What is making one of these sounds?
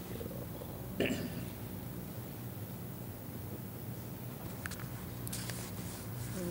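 Papers rustle and shuffle on a table.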